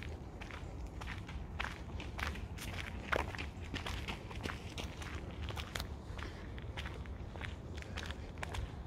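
Footsteps crunch on gravel at a walking pace.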